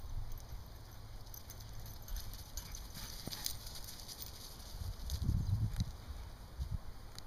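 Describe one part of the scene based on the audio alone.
Dogs run and scuffle across dry grass.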